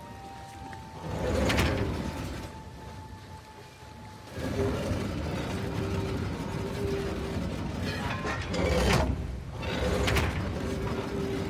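Stone machinery grinds and rumbles as it shifts.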